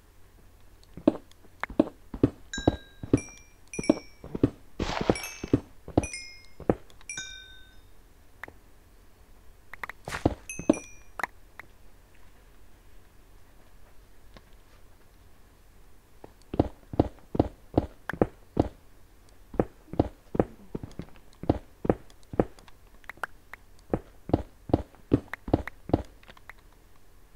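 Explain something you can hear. A pickaxe strikes stone in quick, repeated knocks.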